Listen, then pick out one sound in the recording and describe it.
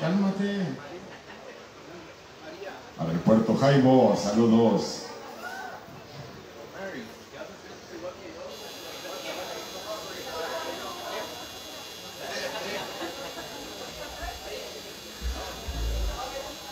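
A man sings loudly into a microphone over a loudspeaker.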